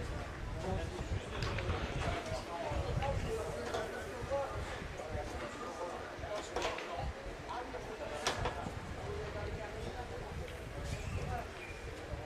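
A crowd of spectators murmurs and chatters outdoors.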